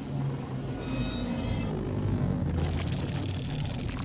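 Creatures fire glowing beams with a low electric hum.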